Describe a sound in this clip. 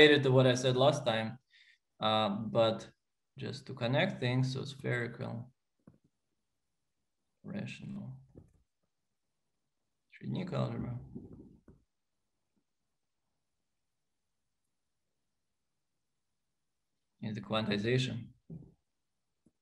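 A man lectures calmly through a microphone, pausing between phrases.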